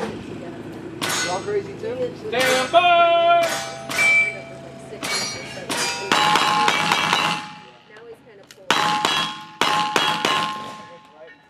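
A single-action revolver fires a series of shots outdoors.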